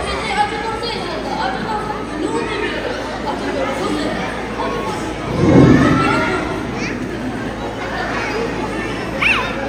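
Several women sing together.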